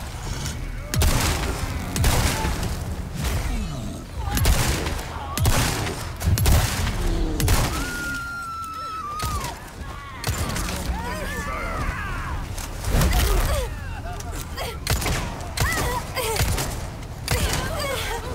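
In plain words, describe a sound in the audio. Gunshots ring out repeatedly and echo.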